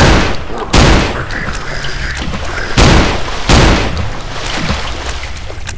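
Gunshots fire in loud, sharp bursts.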